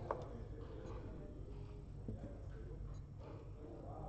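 A game clock button is pressed with a click.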